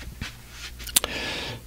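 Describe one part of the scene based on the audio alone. A middle-aged man starts to speak close to a microphone.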